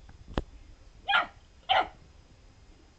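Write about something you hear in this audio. A puppy snorts twice, close by.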